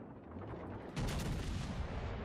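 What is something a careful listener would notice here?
Shells splash heavily into the sea.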